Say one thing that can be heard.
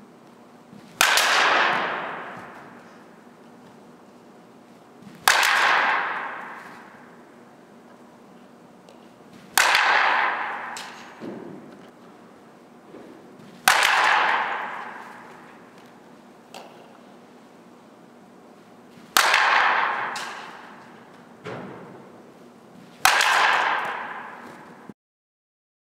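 A bat cracks sharply against a softball, again and again, echoing in a large indoor hall.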